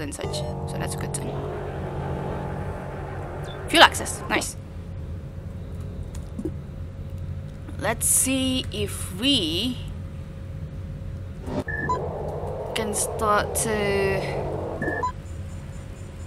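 Electronic game sounds beep and chirp.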